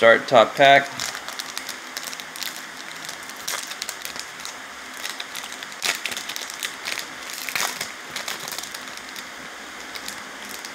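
A foil wrapper crinkles and rustles as it is torn open by hand.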